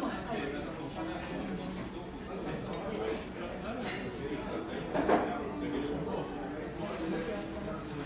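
A spoon clinks and scrapes against a ceramic bowl.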